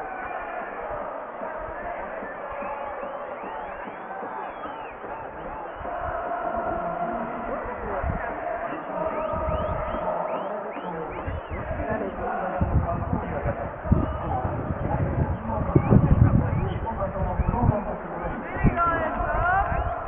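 A huge stadium crowd chants and sings loudly in unison, echoing across the open stands.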